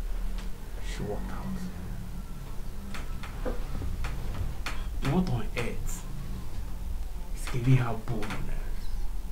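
A man speaks softly in short bursts nearby.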